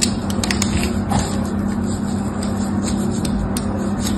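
A blade scrapes and cuts into a bar of soap.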